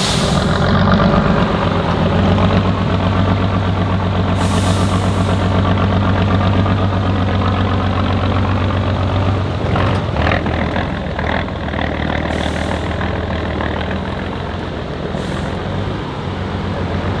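Big tyres crunch over dirt and grass.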